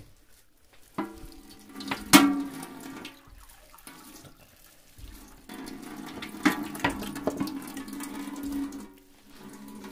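Water runs from a tap into a glass.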